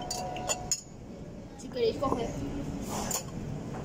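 A glass shaker knocks on a table.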